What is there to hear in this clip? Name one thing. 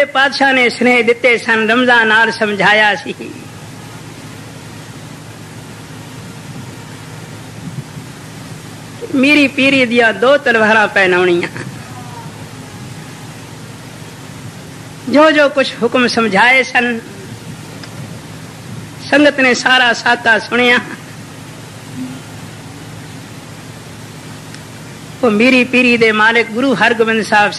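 An elderly man chants slowly into a microphone, in phrases with long pauses.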